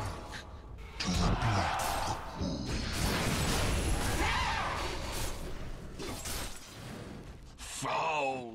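Spell effects and weapon blows clash and crackle in a game battle.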